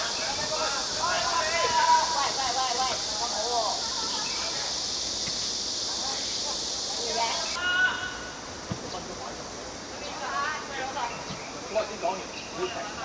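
Young boys shout and call out to each other across an open field.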